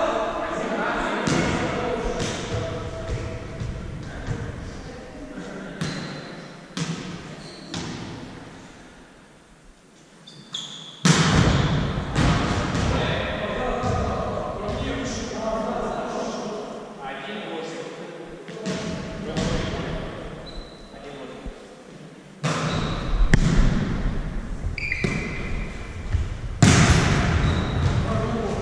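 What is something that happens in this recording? Young men shout and call out to each other, echoing in a large hall.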